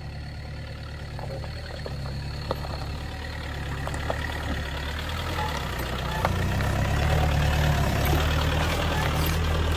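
Tyres crunch and grind over rocky gravel.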